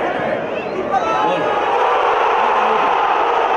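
A crowd roars louder as a player runs toward the goal.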